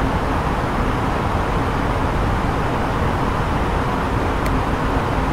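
Steady airflow and engine roar fill an airliner cockpit in flight.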